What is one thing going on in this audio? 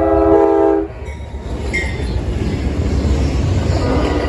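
A diesel locomotive roars past close by.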